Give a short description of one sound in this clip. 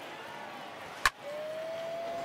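A wooden bat cracks against a baseball.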